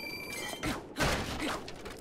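A wooden box shatters with a crash.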